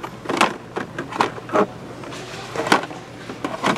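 Plastic toy packages rattle and rustle against a metal rack as a hand handles them.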